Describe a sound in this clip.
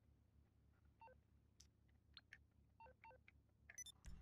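A phone menu clicks and beeps softly.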